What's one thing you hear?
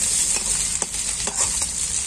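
A metal spatula scrapes against a metal pan.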